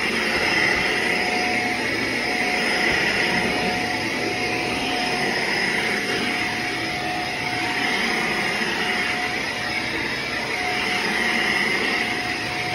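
A vacuum cleaner whirs steadily as it is pushed back and forth over carpet.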